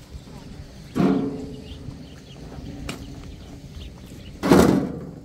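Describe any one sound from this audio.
Stones knock and thud as they are set down.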